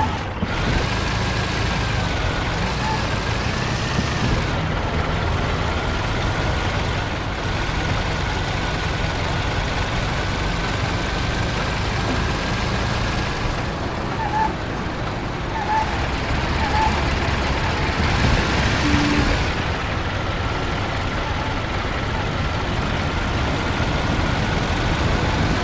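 An old car engine rumbles steadily as the car drives along.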